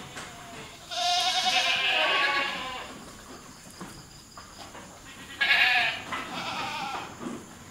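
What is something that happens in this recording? A goat bleats loudly.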